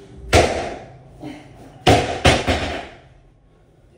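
A barbell with weights thuds and clatters onto a rubber floor.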